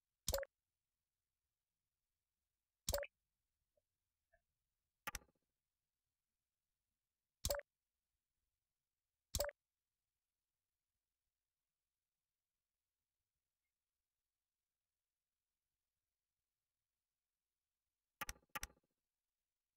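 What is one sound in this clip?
Short, sharp clicks sound now and then as building parts snap into place.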